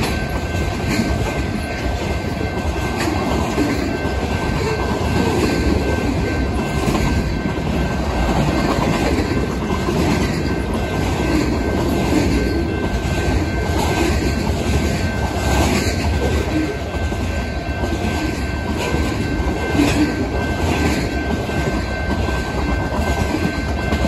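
Steel wheels clack rhythmically over rail joints.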